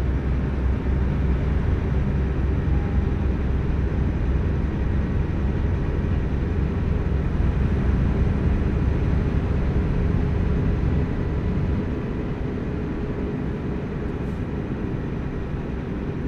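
Tyres roar on a road.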